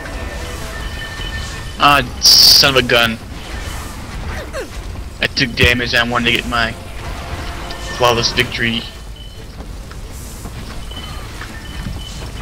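Fiery magic blasts burst and crackle in a hectic battle.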